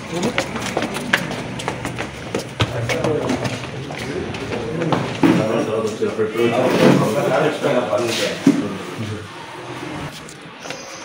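Several men talk nearby, their voices overlapping.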